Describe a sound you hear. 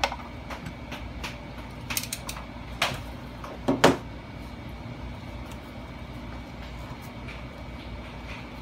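Plastic headphone parts click and rattle as they are handled.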